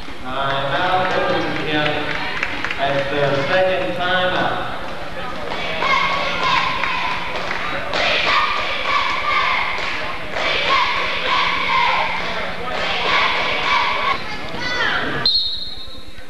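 A group of young women chant a cheer in unison.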